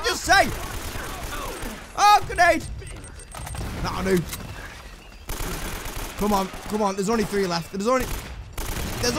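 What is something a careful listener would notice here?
Rifle shots crack out in short bursts.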